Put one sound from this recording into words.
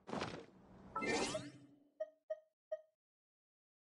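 Soft electronic chimes blip as a game menu opens.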